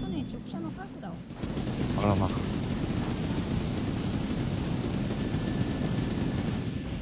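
A large walking machine rumbles and clanks.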